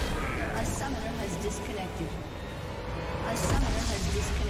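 Game spell effects crackle and clash in a fight.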